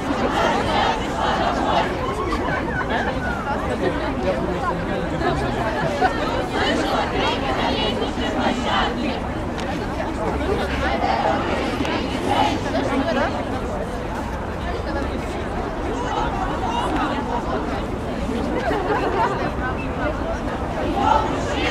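A large crowd of men and women outdoors chants and shouts loudly.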